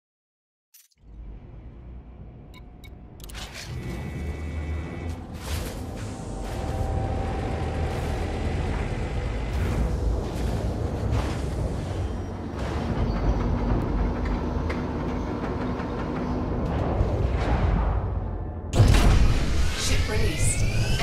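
A spaceship engine hums and rumbles low and steadily, growing louder.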